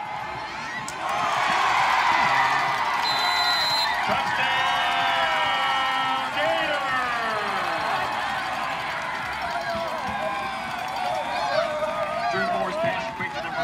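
A crowd cheers loudly in the stands.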